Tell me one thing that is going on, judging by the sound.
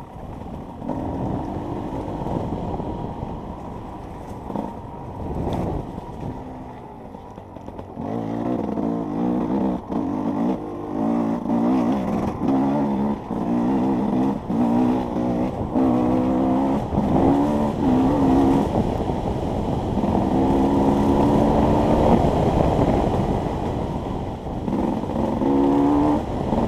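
A dirt bike engine revs up and down hard, heard up close.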